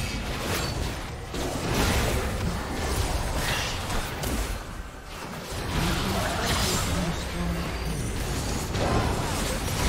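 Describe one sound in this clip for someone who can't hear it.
Game spells whoosh and crackle in a busy fight.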